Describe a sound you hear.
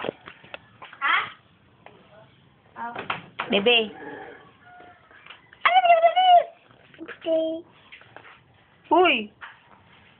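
A young toddler babbles and squeals close by.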